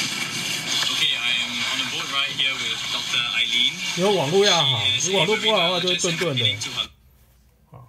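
A young man talks with animation, heard through a small speaker over wind.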